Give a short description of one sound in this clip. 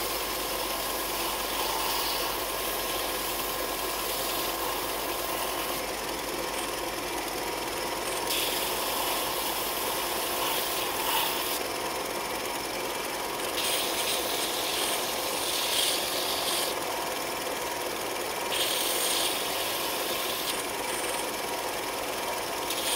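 A belt sander runs with a steady whirring hum.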